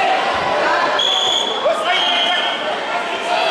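A referee blows a whistle sharply in a large echoing hall.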